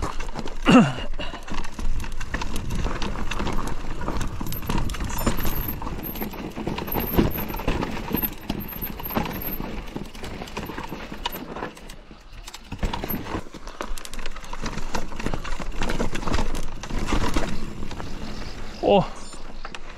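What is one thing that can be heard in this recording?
Mountain bike tyres crunch over rock and loose gravel.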